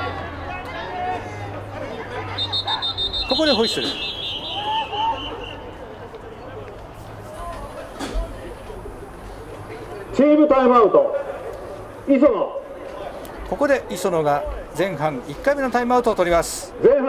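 Players and spectators on the sideline shout and cheer outdoors.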